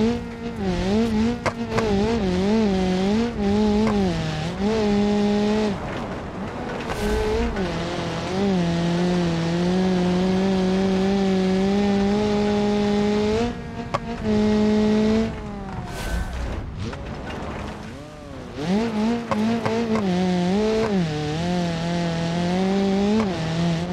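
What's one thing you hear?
A car engine revs hard, rising and falling as gears change.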